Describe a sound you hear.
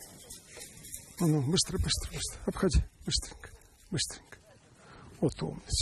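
A dog runs and rustles through dry grass.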